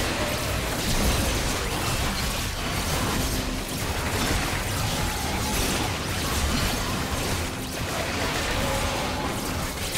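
Magic spells crackle and boom in a game battle.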